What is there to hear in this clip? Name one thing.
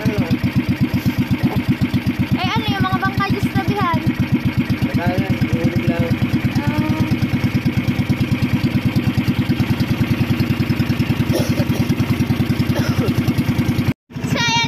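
A boat's engine chugs steadily and loudly, close by.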